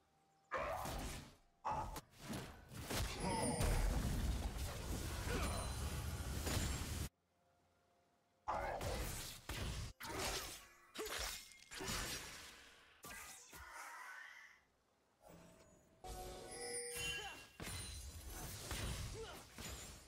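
Video game spell effects whoosh, zap and crackle in quick bursts during a fight.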